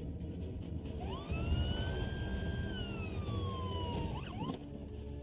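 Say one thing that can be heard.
A siren wails, rising and then falling.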